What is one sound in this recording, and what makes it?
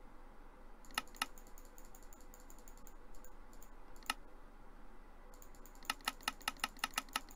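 Short sharp game menu clicks sound as items are placed.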